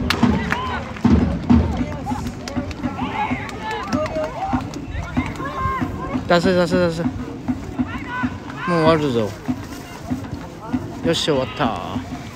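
A crowd of spectators talks and calls out nearby.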